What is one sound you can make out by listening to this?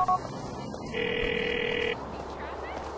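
A phone call tone rings once.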